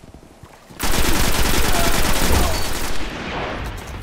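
A rapid burst of automatic gunfire rattles loudly.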